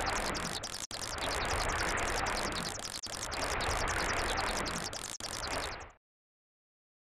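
Water bubbles and rushes steadily underwater.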